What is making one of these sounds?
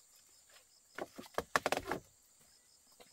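Footsteps thud and clatter on a hollow bamboo floor.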